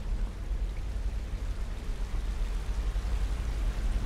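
A waterfall rushes and splashes.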